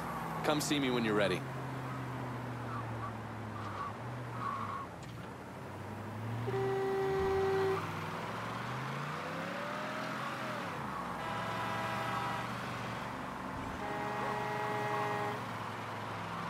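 A car engine hums steadily and rises and falls as the car drives along.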